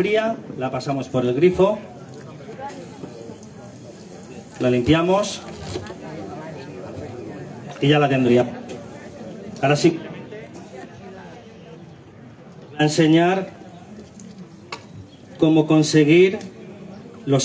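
A middle-aged man speaks with animation through a microphone in short bursts.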